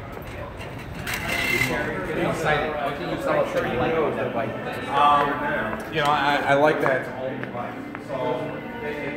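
Several people chat nearby indoors.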